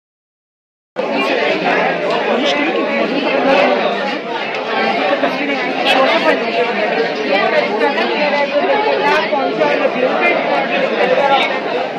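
A young woman explains calmly nearby.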